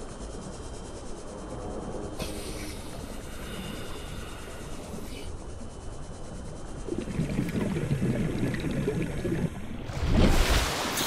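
A small underwater vehicle hums steadily with a muffled, bubbling rumble.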